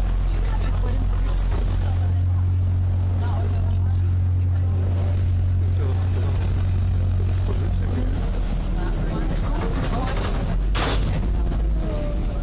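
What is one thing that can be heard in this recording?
A boat engine drones low and steady nearby.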